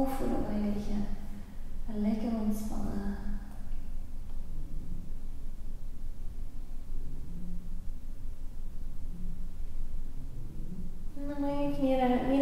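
A woman speaks softly and calmly, close by.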